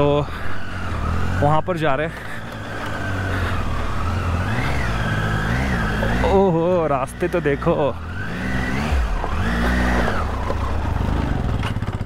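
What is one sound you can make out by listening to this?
A motorcycle engine rumbles steadily, rising and falling as the rider throttles.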